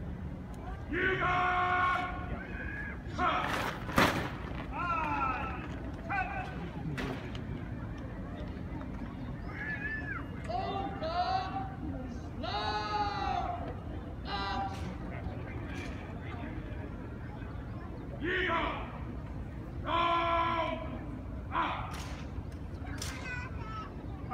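A brass military band plays short bursts of music outdoors.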